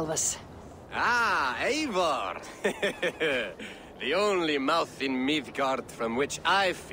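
A man answers warmly and calmly, heard close.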